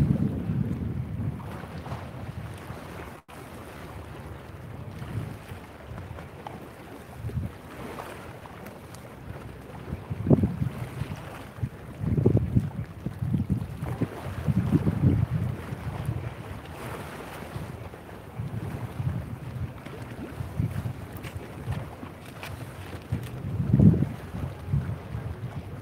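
Wind gusts and buffets outdoors.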